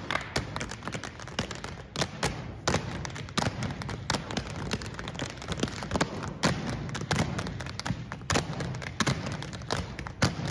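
Feet stamp and shuffle rhythmically on a stage floor.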